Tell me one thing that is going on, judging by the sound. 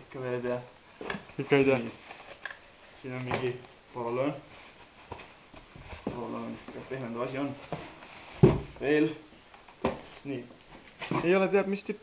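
Paper wrapping crinkles and rustles as it is pulled out of a box.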